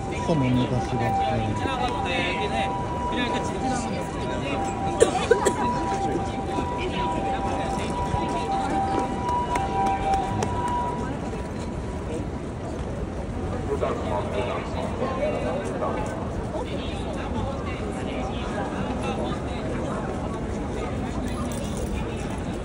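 A busy crowd murmurs and chatters outdoors.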